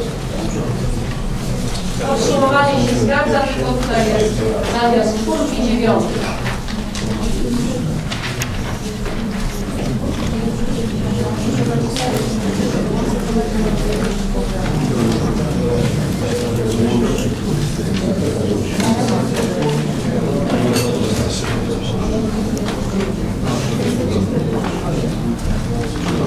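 A man speaks calmly through a microphone in a room.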